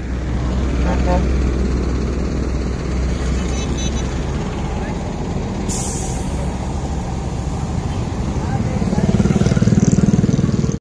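A large bus engine idles with a low, steady rumble nearby.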